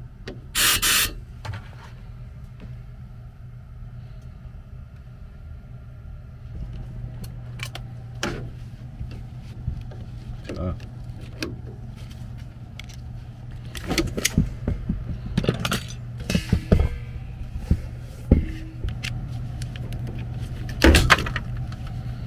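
Gloved hands knock and rattle against metal parts.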